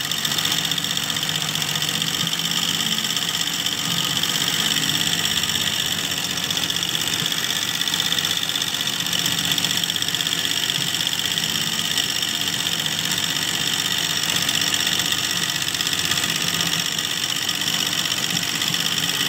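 An embroidery machine needle stitches rapidly with a steady, fast mechanical chatter.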